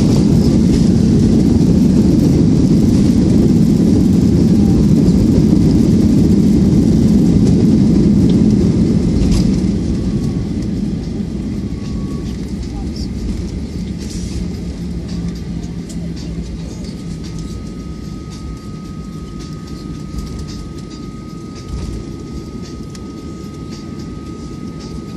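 Jet engines roar loudly through a plane's cabin, then ease down to a lower rumble.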